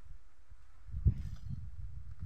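A wooden beam knocks against a roof frame.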